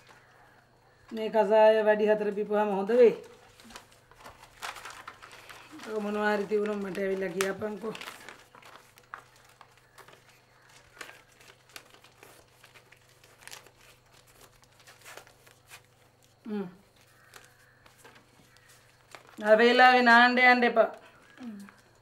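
A woman speaks calmly nearby, in short phrases with pauses between.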